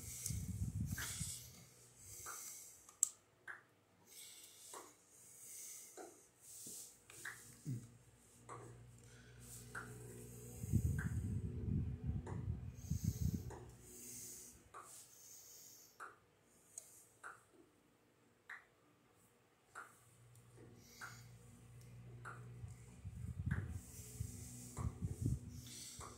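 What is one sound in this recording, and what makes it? Video game sound effects of blocks being struck play from a television speaker with repeated short clicks.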